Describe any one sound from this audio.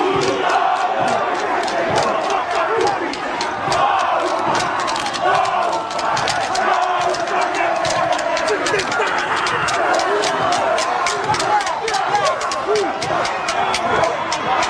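A stadium crowd cheers and murmurs in the distance.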